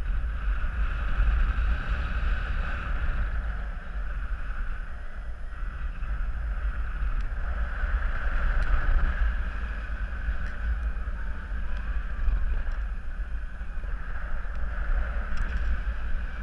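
Wind rushes and buffets loudly against the microphone, high in the open air.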